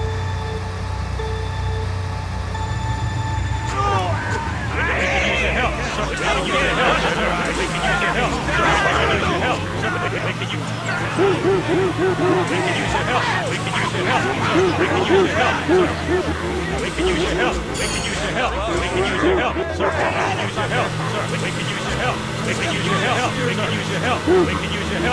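Kart engines hum and whine as they race.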